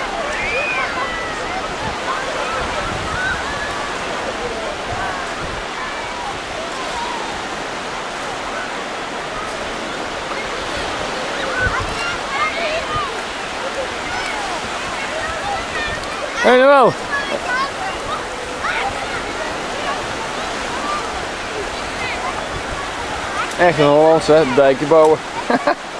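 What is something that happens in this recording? Many children and adults chatter and call out nearby outdoors.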